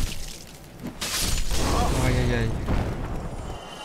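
A roaring fire blast bursts out.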